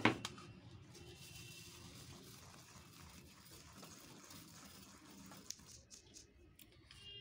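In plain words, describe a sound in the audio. Flour rustles softly as fingers rub it through a metal sieve.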